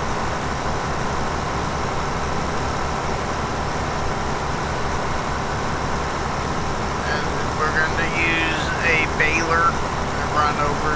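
A combine harvester engine drones steadily.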